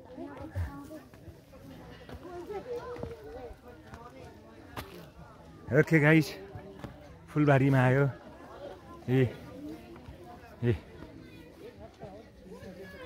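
Footsteps crunch on a dry dirt path.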